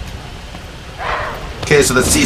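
A young man speaks through a microphone, close up.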